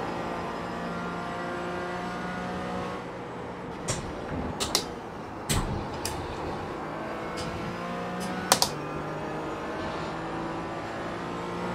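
A racing car engine drones steadily, its pitch rising and falling through the gears.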